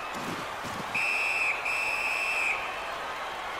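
A referee's whistle blows two sharp blasts.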